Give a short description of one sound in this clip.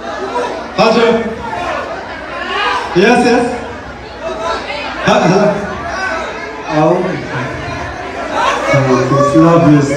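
A crowd sings along loudly in a large echoing hall.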